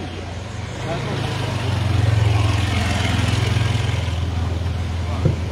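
A motor scooter rides past close by.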